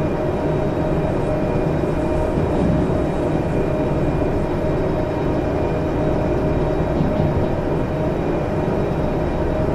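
A train's motor hums and rumbles steadily as it rolls along the track.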